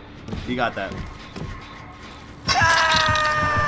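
Heavy creature footsteps thud on a metal floor.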